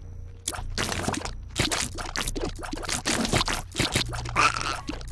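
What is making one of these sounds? Quick game shots pop again and again.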